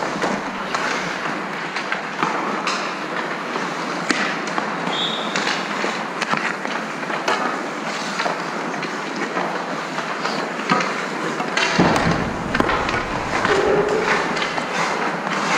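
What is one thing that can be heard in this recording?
Hockey sticks clack against pucks and the ice.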